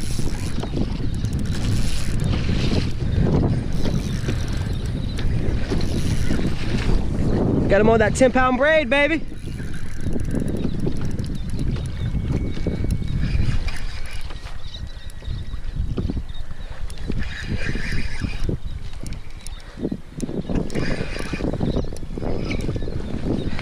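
A fishing reel whirs and clicks as its handle is cranked.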